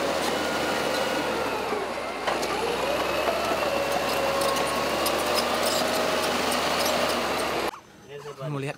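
A bulldozer engine roars loudly up close.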